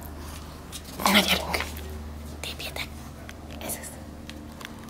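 Small dogs growl and snuffle playfully up close.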